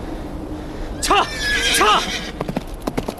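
A horse neighs loudly.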